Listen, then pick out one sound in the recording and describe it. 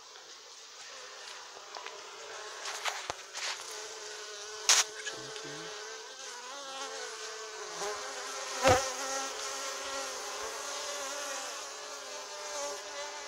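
Bees buzz and hum close by.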